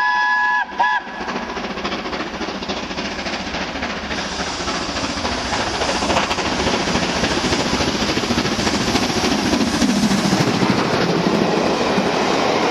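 A steam locomotive chuffs hard as it approaches and passes.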